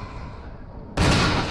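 A gun fires once, loud and close.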